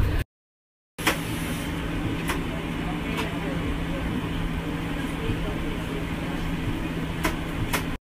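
A bus engine hums steadily from inside the cab.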